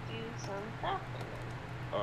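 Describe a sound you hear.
A wooden club knocks against a wooden crate.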